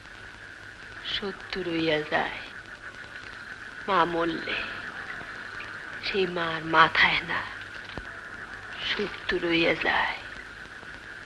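A young woman sings in a soft, slow voice.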